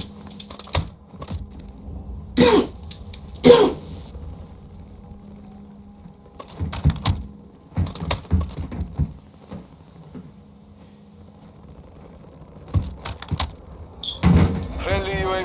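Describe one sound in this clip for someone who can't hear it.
Footsteps clatter on a metal walkway.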